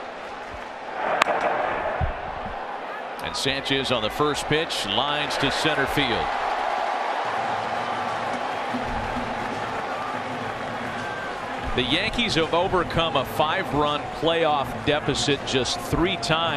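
A large crowd cheers and murmurs in an open stadium.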